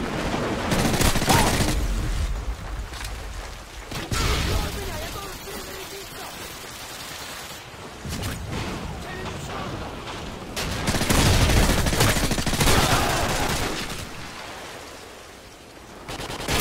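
Rapid gunfire rattles from a rifle.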